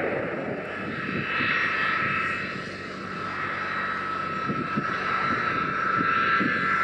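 A jet engine hums with a steady high whine while a plane taxis.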